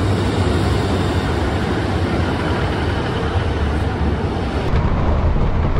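A train rolls slowly past, rumbling close by.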